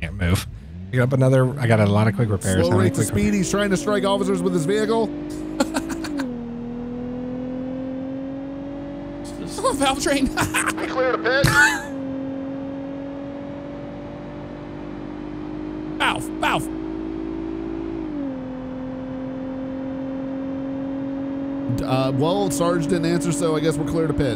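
A car engine drones as the car speeds up, its pitch dipping briefly at each gear change.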